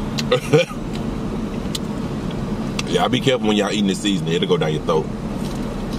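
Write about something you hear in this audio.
A young man chews food noisily.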